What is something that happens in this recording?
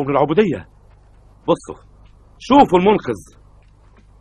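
An elderly man shouts angrily nearby.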